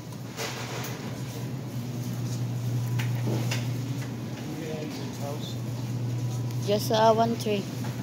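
A plastic bag crinkles close by.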